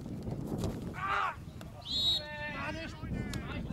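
Young men shout across an open field outdoors.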